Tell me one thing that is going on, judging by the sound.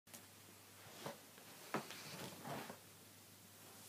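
A man shifts and settles onto a soft couch, his clothes rustling.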